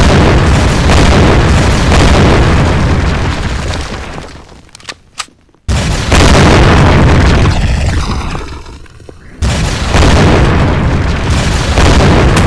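Explosions boom and rumble loudly, again and again.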